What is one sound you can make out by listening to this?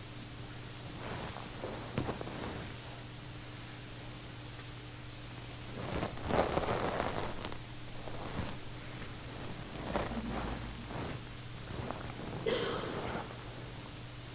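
An elderly man speaks slowly and calmly through a microphone in a large echoing hall.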